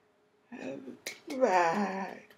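An elderly woman claps her hands.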